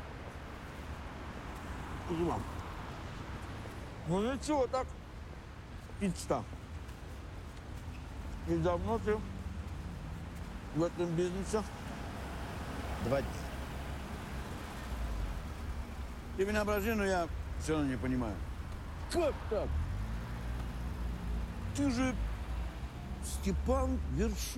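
A low hum of city traffic runs throughout.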